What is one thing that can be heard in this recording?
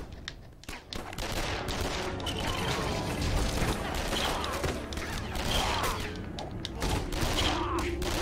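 Toy bricks clatter and break apart with a bright burst.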